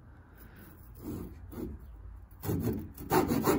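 A hand saw rasps back and forth through wood.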